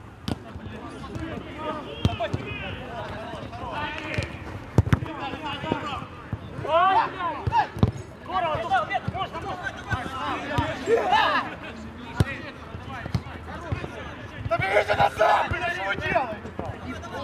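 Young men shout to each other outdoors during a football match.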